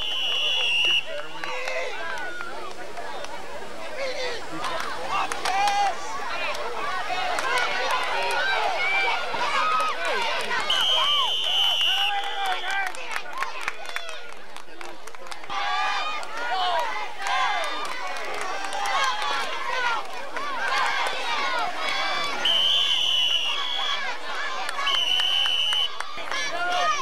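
A referee's whistle blows shrilly several times.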